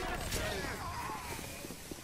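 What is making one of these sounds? A fire burns with a roar.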